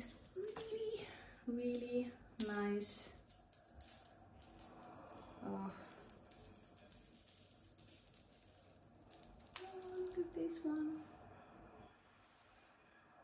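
Beads of a necklace click together.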